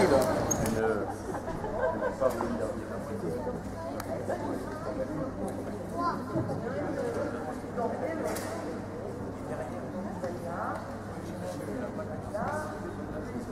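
A man talks calmly to a group nearby.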